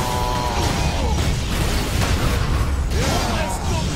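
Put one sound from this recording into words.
Energy blasts crackle.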